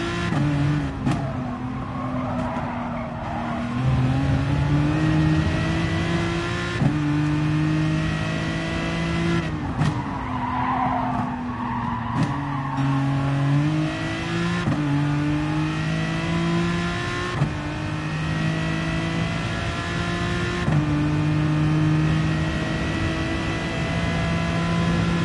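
A racing car engine roars and revs up through the gears, dropping in pitch at each gear change.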